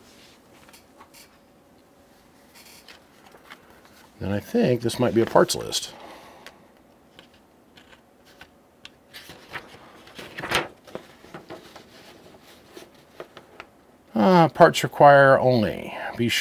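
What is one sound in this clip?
Papers rustle and crinkle close by as hands handle them.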